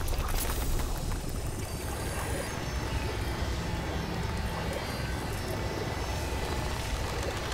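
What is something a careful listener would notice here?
A deep, steady rumble drones throughout.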